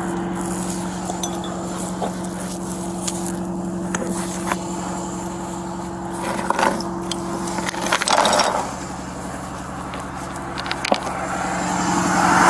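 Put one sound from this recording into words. Metal chains clink and rattle as they are handled.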